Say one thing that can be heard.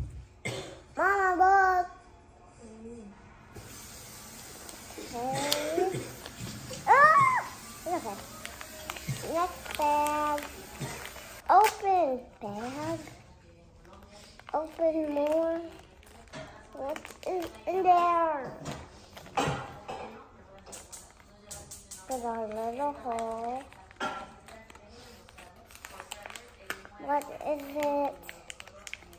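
A young girl talks and sings playfully close by.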